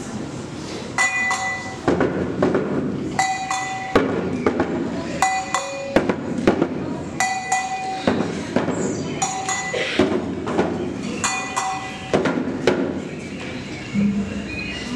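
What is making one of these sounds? A hand drum is beaten in a steady rhythm.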